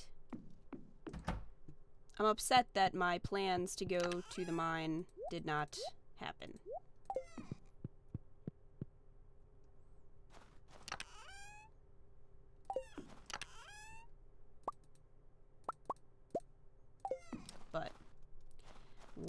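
Short electronic clicks and chimes sound from a game.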